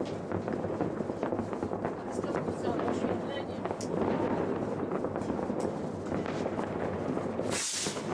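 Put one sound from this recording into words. Fireworks fizz and crackle steadily on the ground.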